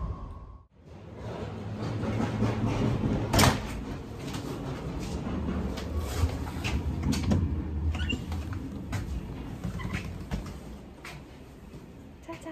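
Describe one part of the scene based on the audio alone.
A train rumbles along with a low, steady roar.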